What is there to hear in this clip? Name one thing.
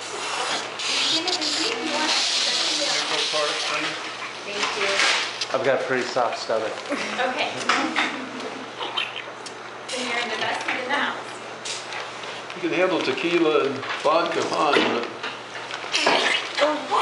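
Adults talk quietly nearby.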